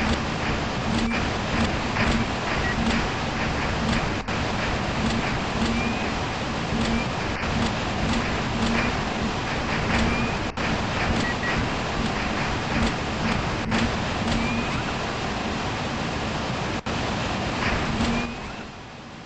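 Jet thrusters roar steadily with a rough rushing noise.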